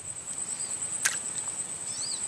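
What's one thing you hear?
A fishing line's bait splashes into the water.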